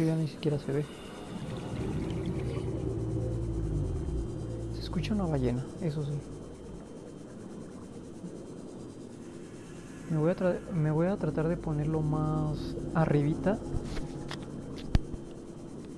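A submarine engine hums steadily underwater.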